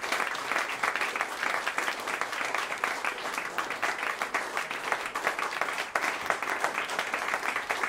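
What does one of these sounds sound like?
A small ensemble plays lively music in a room with some echo.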